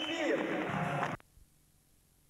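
A group of young men sing together through microphones.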